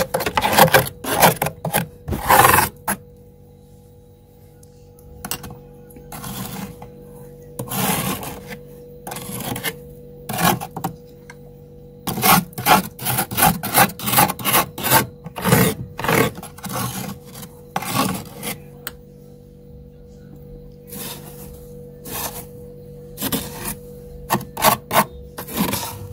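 A tool scrapes and chips at thick ice in short bursts.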